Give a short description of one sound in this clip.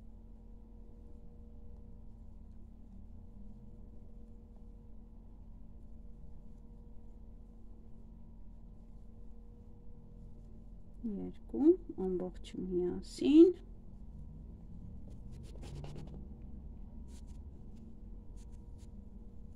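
A crochet hook softly rubs and clicks through yarn.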